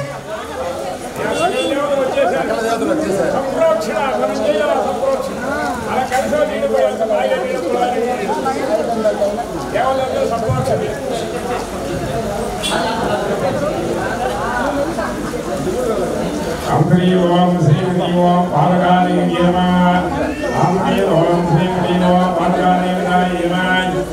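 Several men chant together nearby.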